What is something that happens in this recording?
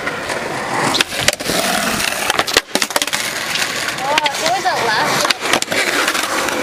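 A skateboard clacks and slaps hard against concrete.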